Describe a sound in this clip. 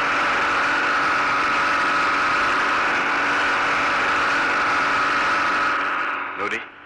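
A motorboat engine roars steadily as the boat speeds across water.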